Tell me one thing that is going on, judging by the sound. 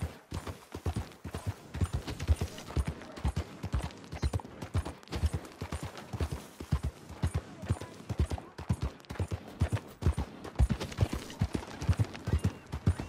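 Horse hooves thud steadily on a muddy road.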